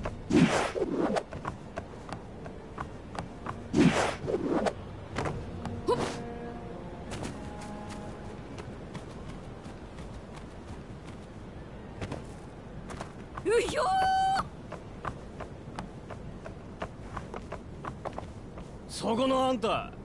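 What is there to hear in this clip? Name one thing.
Quick footsteps patter on wooden boards and ground.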